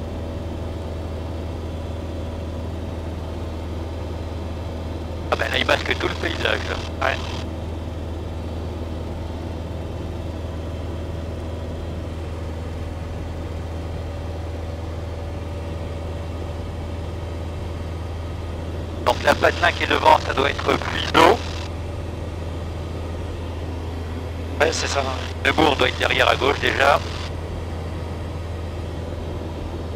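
A small aircraft engine drones steadily in flight.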